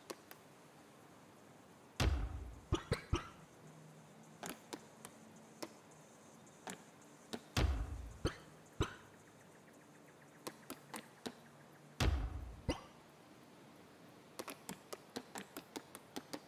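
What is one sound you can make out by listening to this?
Short soft clicks tick rapidly as menu items change.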